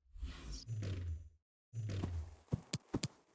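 A game menu whooshes as it changes.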